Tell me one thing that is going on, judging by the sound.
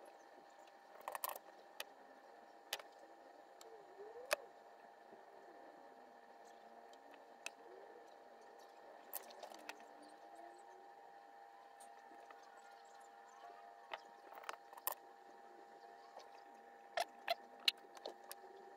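Small tools tap and click against a circuit board.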